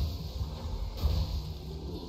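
Laser guns fire in short bursts.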